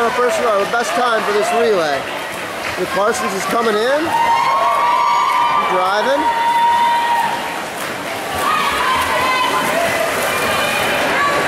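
A swimmer splashes steadily through the water.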